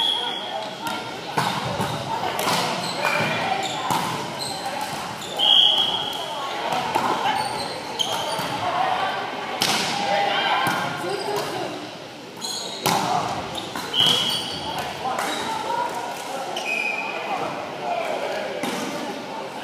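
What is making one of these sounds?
Young people call out and talk in an echoing hall.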